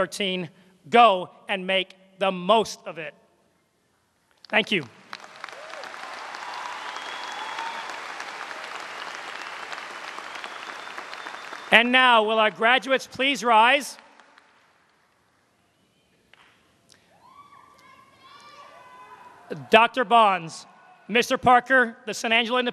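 A man speaks calmly through a microphone and loudspeakers in a large hall.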